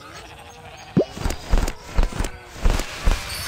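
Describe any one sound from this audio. Quick sparkly game chimes and pops ring out in bursts.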